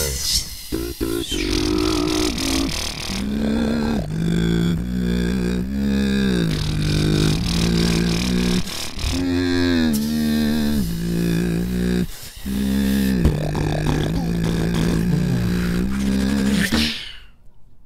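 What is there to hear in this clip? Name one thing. A young man beatboxes loudly into a microphone, with sharp rhythmic clicks and pops.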